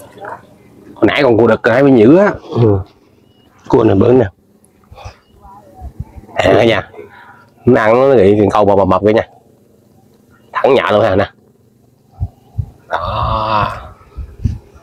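A man talks close by in a calm, lively voice.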